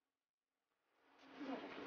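Scissors snip through a plastic packet.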